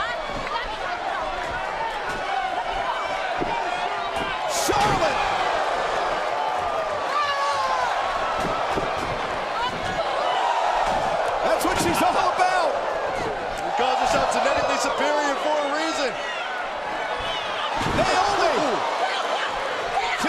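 A large crowd cheers and screams loudly throughout.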